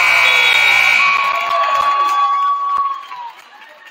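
A referee's whistle blows a long blast.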